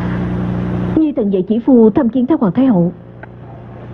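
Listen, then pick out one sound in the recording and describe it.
A young woman speaks politely, close by.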